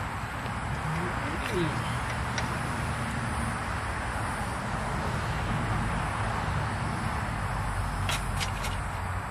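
A metal jack clicks and rattles as it is worked by hand.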